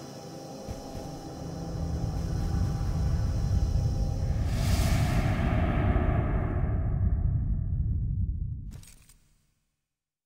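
Flames roar loudly and then die away.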